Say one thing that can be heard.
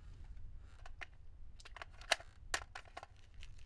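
A rifle clicks sharply as a man handles it.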